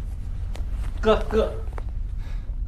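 A man calls out briefly in a hallway.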